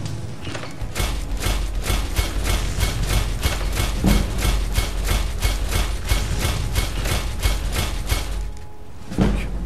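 A hammer strikes metal on an anvil in quick, steady blows.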